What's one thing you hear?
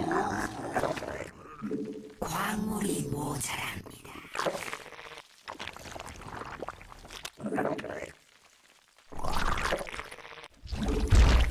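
A young man talks quickly and with animation through a microphone.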